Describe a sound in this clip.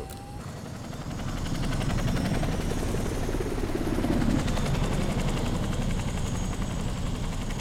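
A tiltrotor aircraft roars overhead with thudding rotors, growing louder as it passes.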